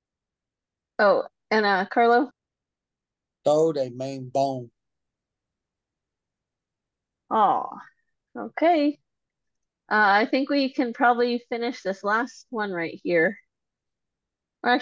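A woman speaks calmly and slowly, close to a microphone, with pauses between phrases.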